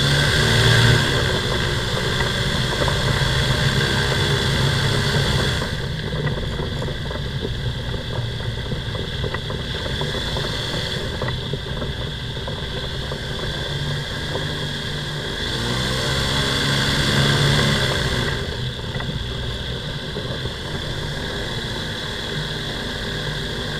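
A small aircraft engine hums loudly and steadily up close, rising and falling in pitch.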